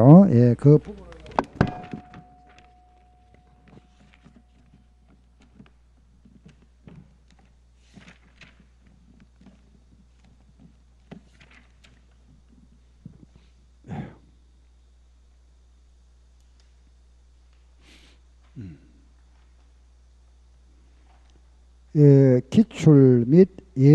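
A middle-aged man speaks loudly into a microphone.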